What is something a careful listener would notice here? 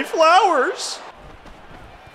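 A young man shouts excitedly into a close microphone.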